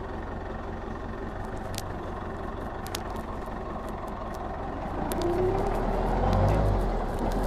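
A forklift's diesel engine rumbles steadily and revs up toward the end.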